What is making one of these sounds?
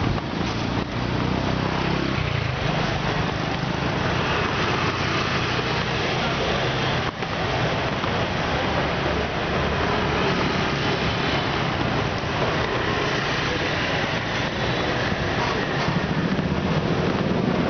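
Motorbike engines hum and buzz along a busy street.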